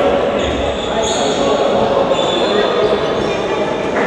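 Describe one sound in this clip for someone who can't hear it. A ball bounces on the floor.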